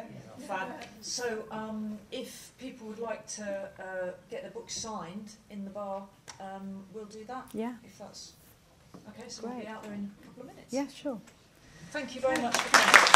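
A woman speaks calmly and expressively into a microphone.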